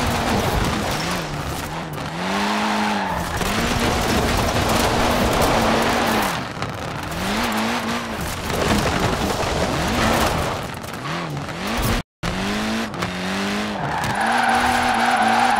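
Tyres screech and hiss on the road.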